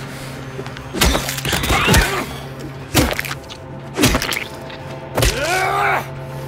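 A metal pipe thuds heavily into flesh, again and again.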